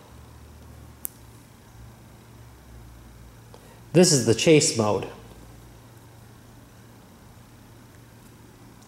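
A button clicks sharply under a finger.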